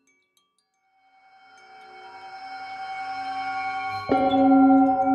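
A metal singing bowl hums as a mallet is rubbed around its rim.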